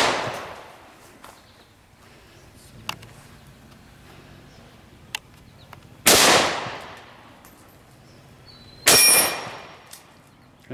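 An air rifle fires with sharp cracks that echo outdoors.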